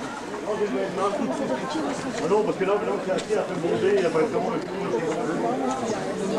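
A young man talks and laughs up close.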